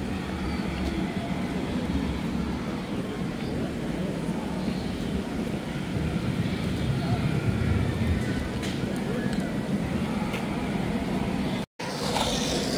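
Boot heels tap on pavement as a woman walks.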